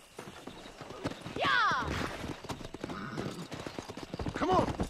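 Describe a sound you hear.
Horse hooves clop on hard ground.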